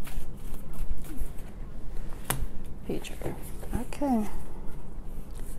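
Playing cards riffle and slap as they are shuffled.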